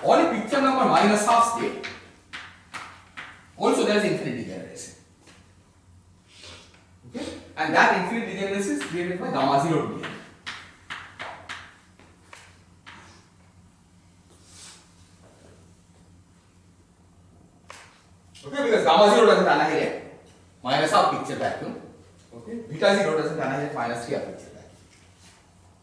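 A man lectures in a large echoing hall, speaking calmly.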